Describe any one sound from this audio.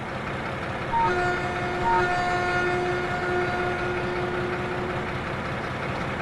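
A locomotive horn sounds a steady two-tone blast.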